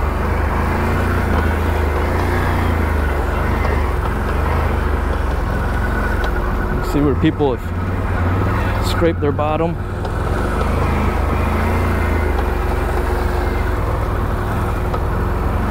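An all-terrain vehicle engine rumbles steadily while driving over a rocky trail.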